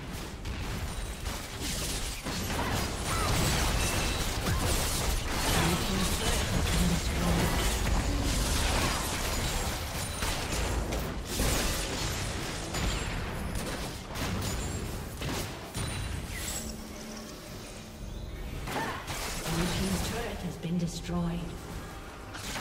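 Game spell effects and attacks burst and clash in rapid succession.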